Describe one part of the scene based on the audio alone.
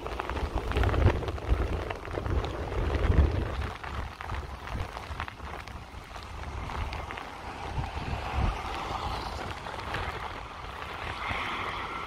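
An Airbus A320 jet airliner approaches to land, its engines roaring.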